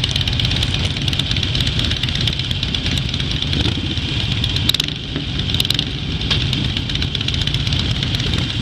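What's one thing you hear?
Motorcycle engines idle with a low, steady rumble close by.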